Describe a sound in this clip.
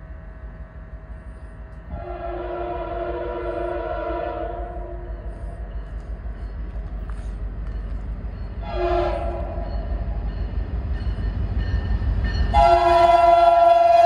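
A train engine rumbles as it approaches.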